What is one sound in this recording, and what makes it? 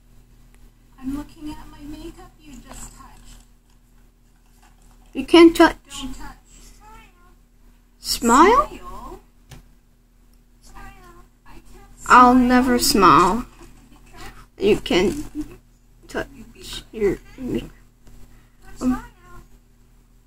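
A parrot talks and whistles through a small loudspeaker.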